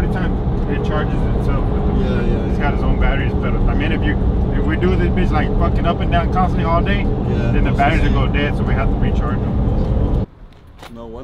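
A man talks casually inside a car.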